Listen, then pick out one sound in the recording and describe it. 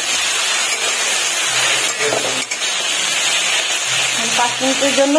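Vegetables sizzle steadily in hot oil in a pan.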